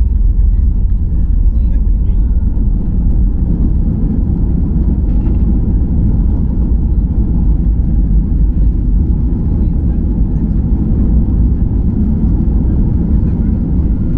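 A jet's engines hum in a steady, deep roar from inside the cabin.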